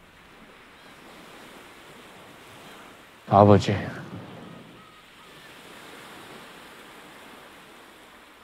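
Waves wash gently onto a beach.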